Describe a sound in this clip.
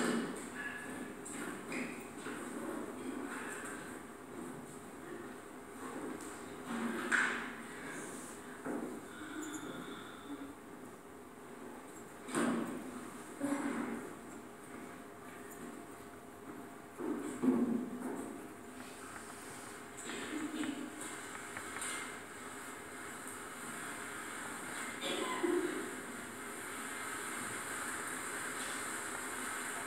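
A film soundtrack plays faintly through loudspeakers in a quiet room.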